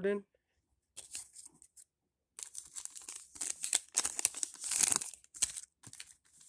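Glossy trading cards slide and rustle as they are shuffled by hand.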